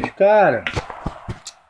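A man exclaims briefly, close to a microphone.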